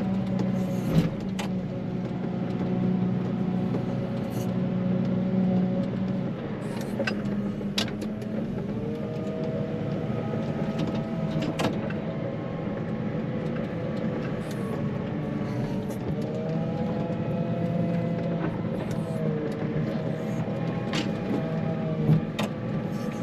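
Metal parts clank and knock now and then.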